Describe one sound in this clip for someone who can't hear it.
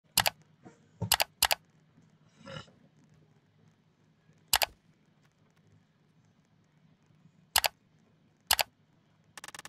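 Short sharp clicks sound from menu buttons.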